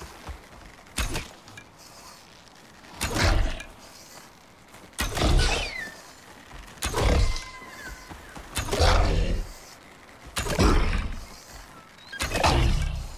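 A pickaxe strikes rock again and again with heavy, crunching thuds.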